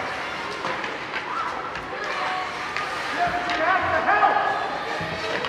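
Hockey sticks clack against the ice and puck.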